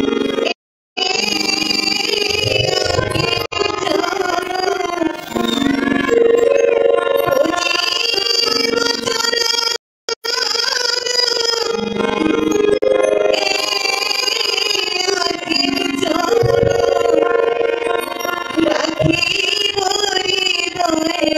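Several women sing together in a chant.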